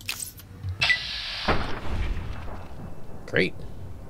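A blade stabs into a large insect.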